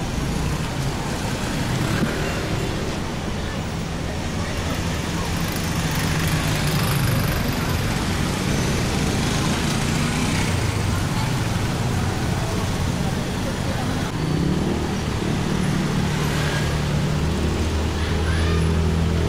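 Motorcycle engines putter and rev close by.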